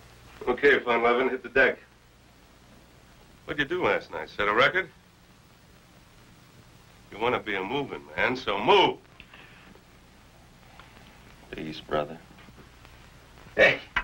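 Another middle-aged man answers calmly and quietly nearby.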